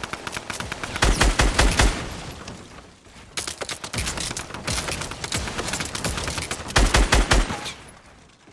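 A gun fires in rapid bursts of shots.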